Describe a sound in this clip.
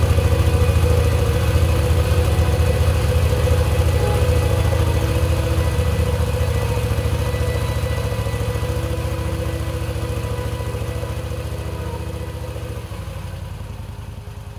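A motorcycle engine rumbles steadily and slowly fades.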